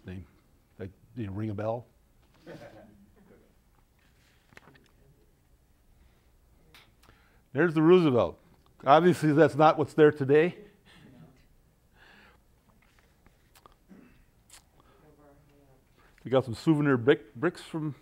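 An elderly man speaks calmly to an audience through a microphone.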